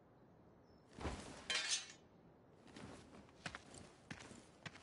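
A large sword swings through the air with a whoosh.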